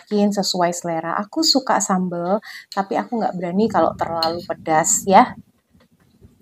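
A woman speaks calmly and clearly, close to a microphone.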